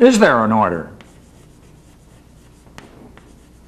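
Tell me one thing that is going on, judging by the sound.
Chalk taps and scratches on a board.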